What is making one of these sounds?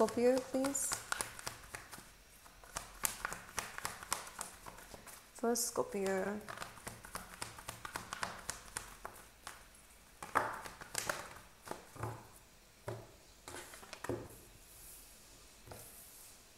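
Small objects click and rustle in a person's hands.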